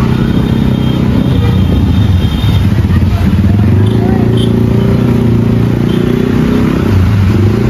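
Motorbike engines idle and rev close by.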